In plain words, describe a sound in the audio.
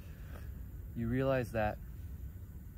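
A young man speaks a few drawn-out words close by.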